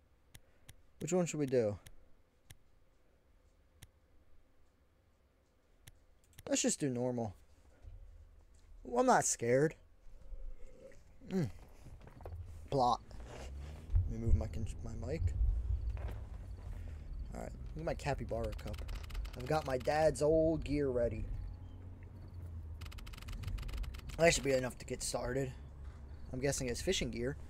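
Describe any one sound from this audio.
A young man talks casually and animatedly close to a microphone.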